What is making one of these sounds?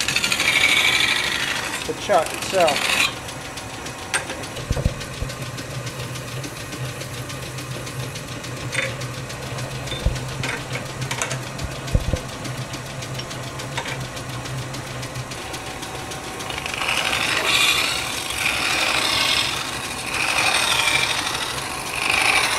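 A lathe motor hums steadily.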